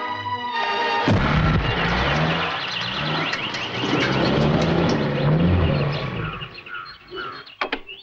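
A truck engine rumbles as the truck drives past.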